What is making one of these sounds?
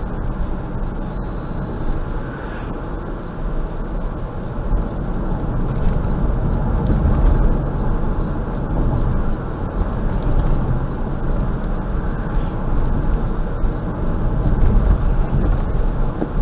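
A car drives steadily along a highway, its engine and tyres humming and rumbling.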